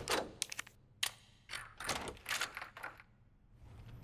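A key turns in a door lock with a metallic clunk.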